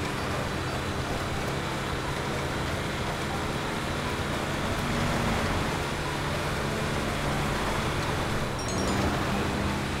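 Tyres crunch over snow.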